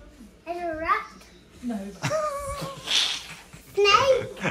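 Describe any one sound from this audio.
A young girl talks in a high voice close by.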